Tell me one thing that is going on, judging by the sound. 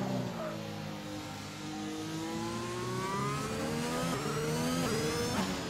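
A racing car engine revs high and climbs in pitch as the car speeds up, then drops briefly with each gear change.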